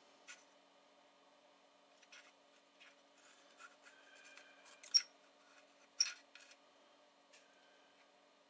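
Small parts click faintly as hands handle a cable.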